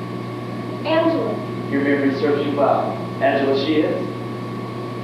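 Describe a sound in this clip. A woman speaks on a stage, heard from a distance in a hall.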